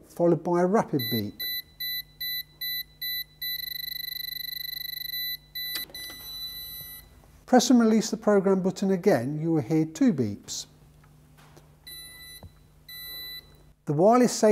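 An electronic device beeps in short repeated pulses.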